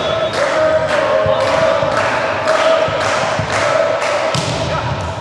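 A volleyball bounces repeatedly on a hard floor.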